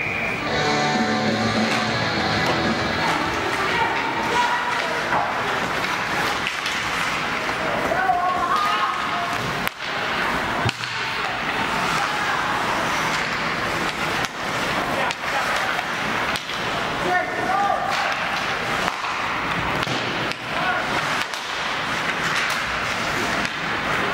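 Ice skates scrape and hiss across an ice rink.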